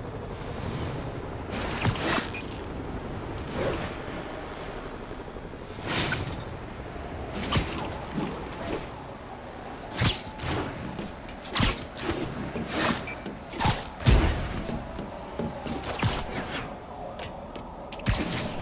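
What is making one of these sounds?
Wind rushes past steadily.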